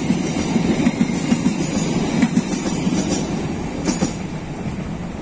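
A passing train rumbles and clatters over the rails close by.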